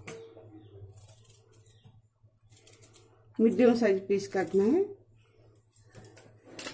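A peeler scrapes the skin off a root vegetable in short strokes.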